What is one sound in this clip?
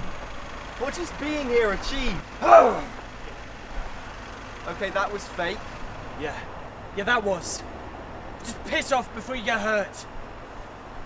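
A young man shouts urgently nearby.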